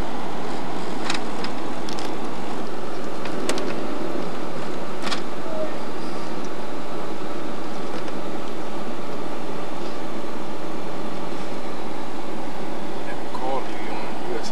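Tyres roll on pavement.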